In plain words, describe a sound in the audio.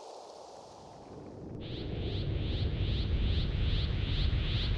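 A powerful energy aura roars with a deep rumble and rhythmic pulsing.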